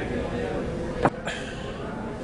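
A young man sets a glass down with a clink.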